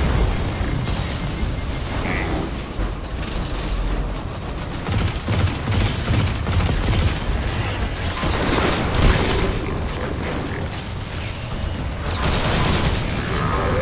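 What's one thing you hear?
Energy blasts crackle and boom.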